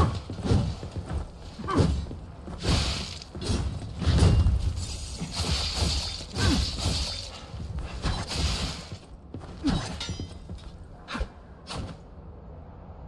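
Blades clash and strike with sharp metallic hits.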